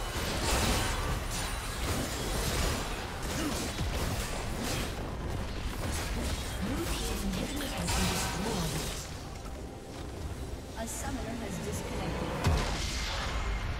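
Fantasy battle sound effects of spells, blasts and clashing weapons come in rapid bursts.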